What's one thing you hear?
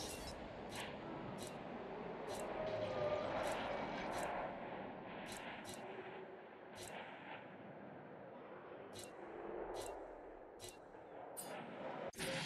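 Soft interface clicks sound as menu items are selected.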